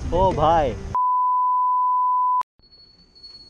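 A steady high test tone beeps.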